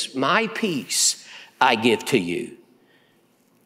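A middle-aged man speaks emphatically through a microphone.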